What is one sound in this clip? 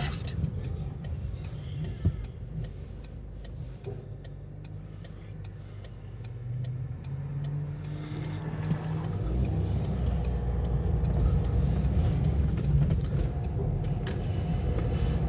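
A car engine hums steadily, then grows louder as the car pulls away.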